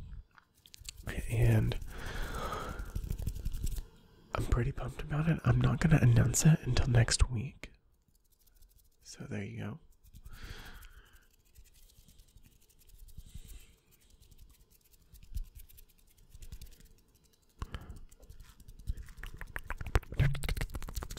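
A man speaks softly and closely into a microphone.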